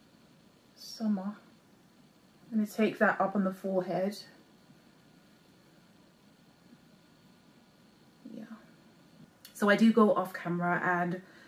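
A young woman speaks calmly, close to the microphone, in short phrases.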